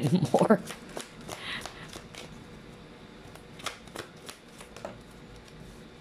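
Playing cards riffle and snap as a deck is shuffled by hand.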